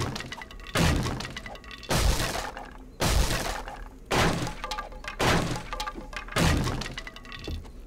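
A club strikes with heavy, repeated thuds.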